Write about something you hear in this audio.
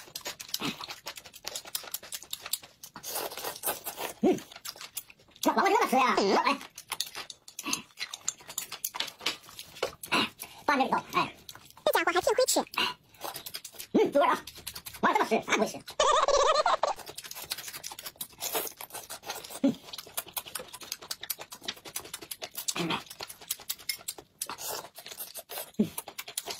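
A man slurps noodles loudly up close.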